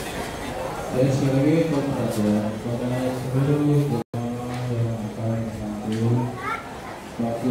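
Men chant loudly together close by.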